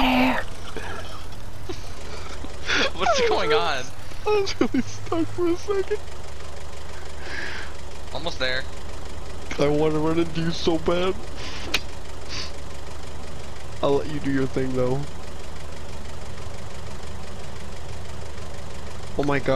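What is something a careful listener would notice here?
A forklift engine hums low and steady.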